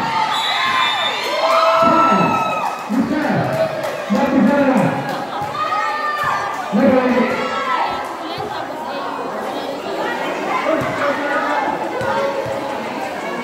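A crowd of young people shouts and cheers loudly outdoors.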